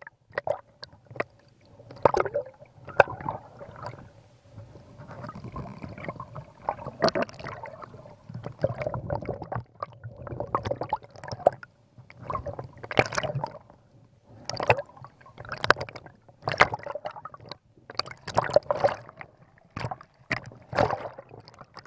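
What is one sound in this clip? A diver's exhaled air bubbles up and gurgles in bursts underwater.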